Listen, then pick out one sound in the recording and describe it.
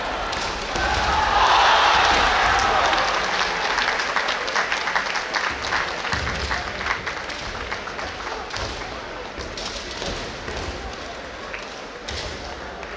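A crowd in a large echoing hall cheers and applauds.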